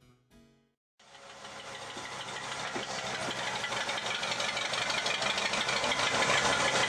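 A small model locomotive whirs and rattles along the track, growing louder.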